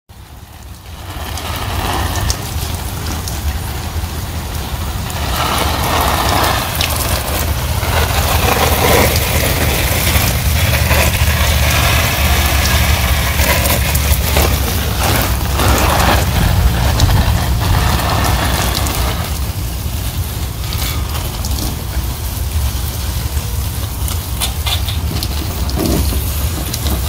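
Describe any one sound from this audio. Water sprays from a hose and patters onto leaves.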